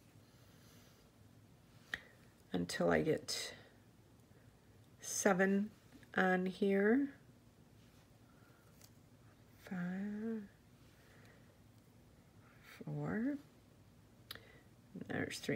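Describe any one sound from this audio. Small glass beads click softly against one another.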